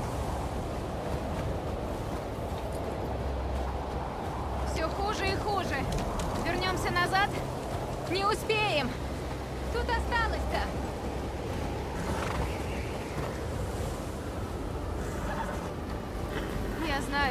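Wind blows through a snowstorm.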